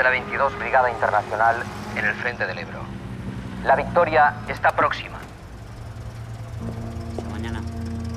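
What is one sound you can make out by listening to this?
A car engine idles.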